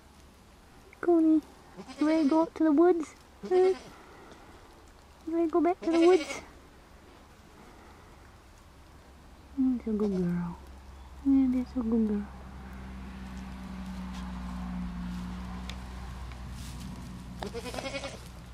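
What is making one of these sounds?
A young raccoon chirrs and whimpers close by.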